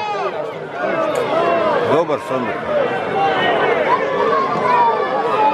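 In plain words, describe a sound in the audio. A crowd of men and women shouts and chatters excitedly nearby.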